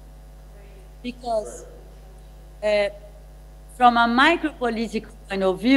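A woman speaks with animation over an online call through loudspeakers in an echoing room.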